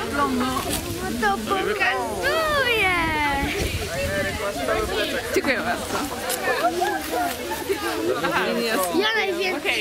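A young girl laughs and speaks with animation close by.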